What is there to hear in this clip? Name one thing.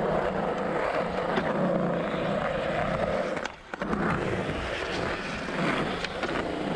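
Skateboard wheels roll and rumble on rough concrete.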